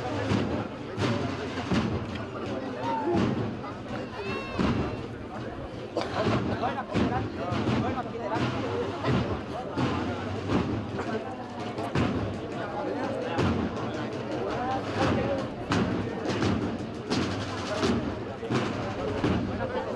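A crowd of people chatters close by outdoors.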